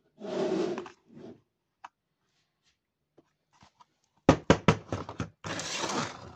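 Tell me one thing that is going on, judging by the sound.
Plastic toy pieces click and clatter.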